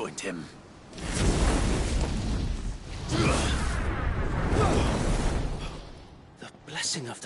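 Fire roars and crackles in a burst of flame.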